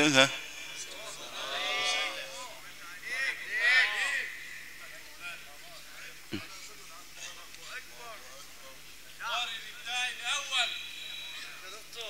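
Men in a crowd murmur and talk in the distance.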